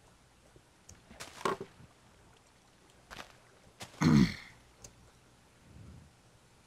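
Water splashes as a game character swims through it.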